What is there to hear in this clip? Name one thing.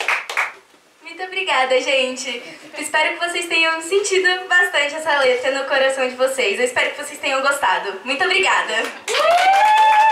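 A young woman sings through a microphone.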